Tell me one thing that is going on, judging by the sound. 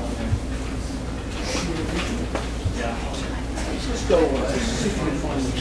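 Young people chatter and talk over one another in a room.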